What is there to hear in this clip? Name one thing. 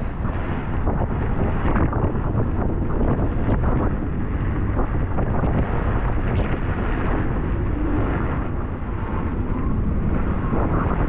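Waves crash and slap against a boat's hull.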